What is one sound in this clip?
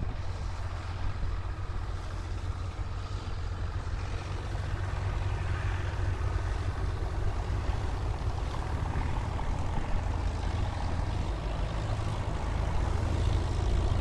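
Tractor engines chug and rumble steadily, growing louder.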